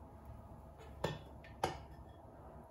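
A metal spoon clinks down on a countertop.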